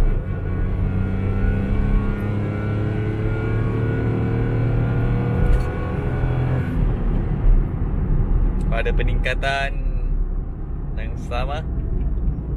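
A car engine revs hard and drones loudly from inside the cabin.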